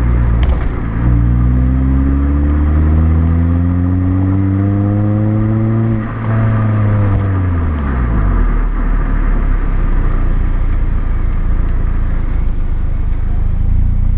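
Wind rushes past the exhaust as the car drives.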